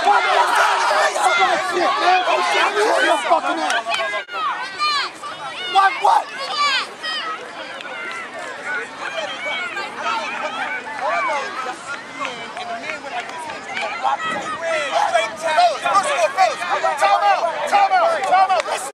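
A crowd of men and children chatter and call out outdoors.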